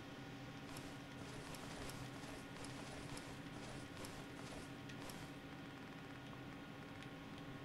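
Short soft clicks tick as a game menu selection moves through a list.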